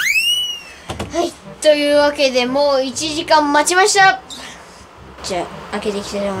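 A young boy speaks with excitement close by.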